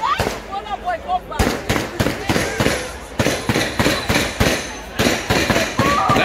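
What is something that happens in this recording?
Stage fireworks hiss and crackle as they shoot upward.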